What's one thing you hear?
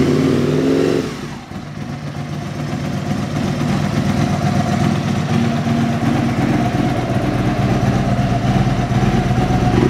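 A V-twin sport motorcycle engine idles with a lumpy beat.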